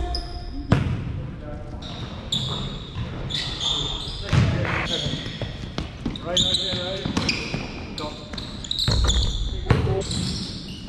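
A basketball bounces and thuds on the floor.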